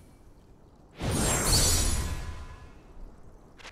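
A magical whoosh swells up and slowly fades.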